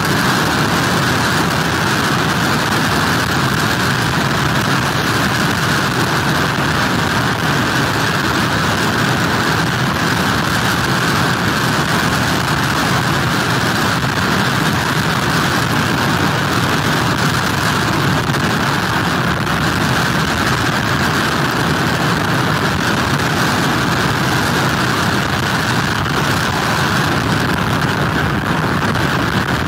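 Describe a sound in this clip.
Heavy waves crash and roar against pier pilings.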